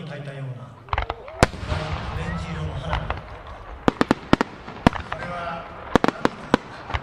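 Fireworks burst with loud booming bangs.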